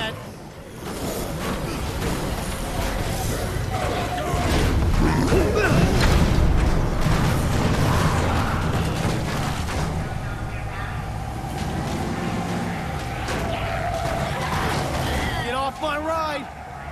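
A van engine roars as it drives.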